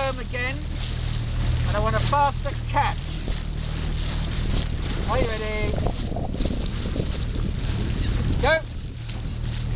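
A young woman calls out loudly to rowers.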